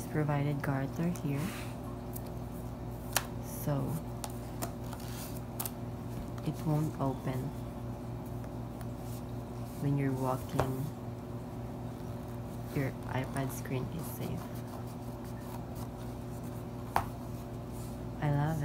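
A tablet case rustles and taps as hands fold and handle it.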